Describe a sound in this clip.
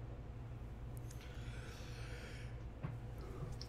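A man yawns loudly near a microphone.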